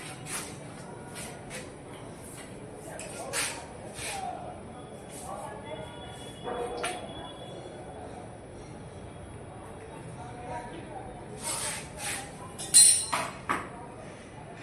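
Hard tiles clatter and knock as they are handled.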